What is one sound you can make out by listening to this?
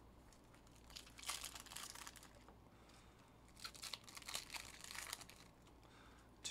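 A foil wrapper crinkles as hands tear it open.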